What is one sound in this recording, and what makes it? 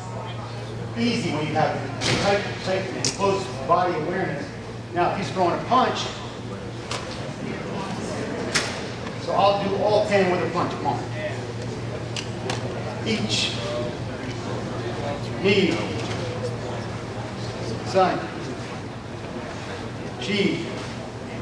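A man speaks calmly and explains.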